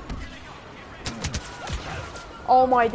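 Laser rifle shots fire in a quick burst.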